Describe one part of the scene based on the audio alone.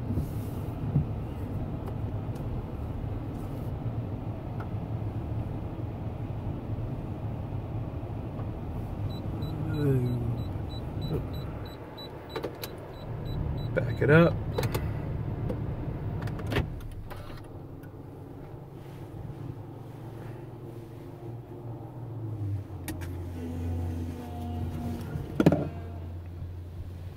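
Machinery in a car wash rumbles steadily.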